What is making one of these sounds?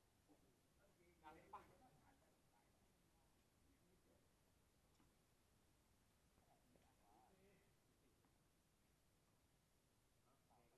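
Tennis balls are struck with rackets outdoors.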